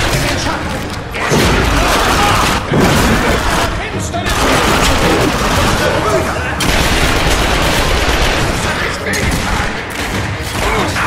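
Monsters snarl and roar.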